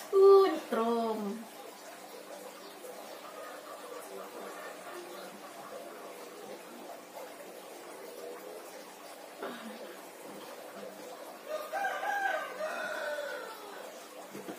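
A woman cries out and moans in pain close by.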